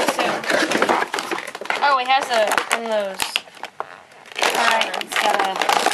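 A cardboard toy box is handled and shifted on a wooden floor.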